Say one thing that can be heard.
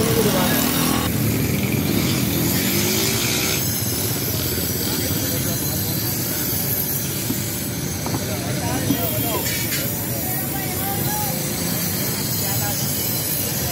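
A grinding wheel whines against metal.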